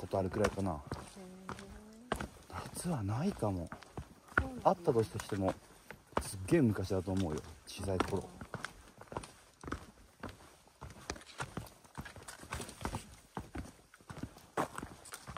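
Footsteps crunch on a forest trail.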